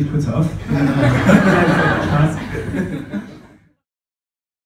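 Men laugh heartily.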